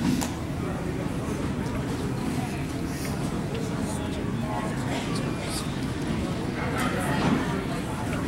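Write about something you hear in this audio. A woman sobs and cries softly nearby.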